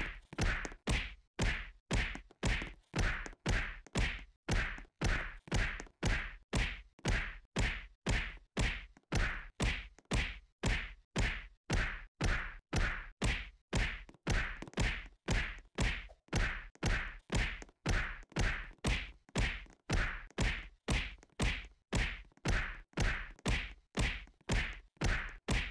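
Punches thud against a padded target in a quick, steady rhythm.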